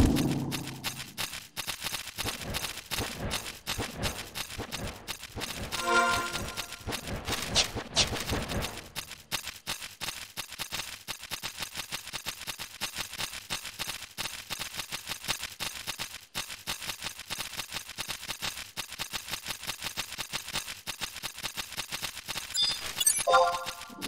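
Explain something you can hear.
Footsteps tread steadily on soft ground.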